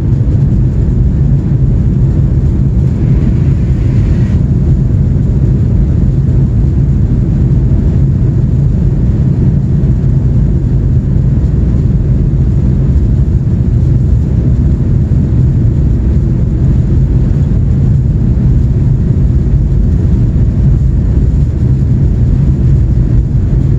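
Aircraft wheels rumble along a runway.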